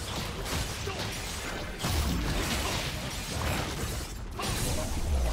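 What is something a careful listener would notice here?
Deep booming impacts thud repeatedly.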